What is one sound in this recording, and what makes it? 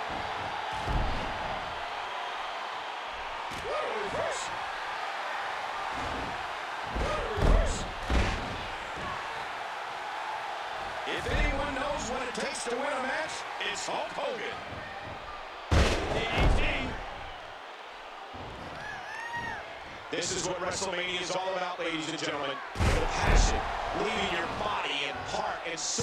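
A crowd roars and cheers steadily in a large arena.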